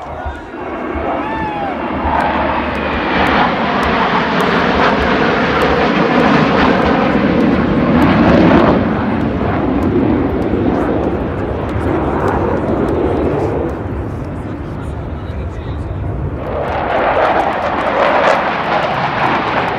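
Jet planes roar overhead in a low rumble.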